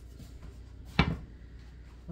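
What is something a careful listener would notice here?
A metal pan clanks down onto a stovetop.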